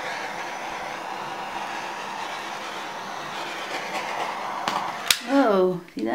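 A heat gun blows with a steady, loud whoosh of air.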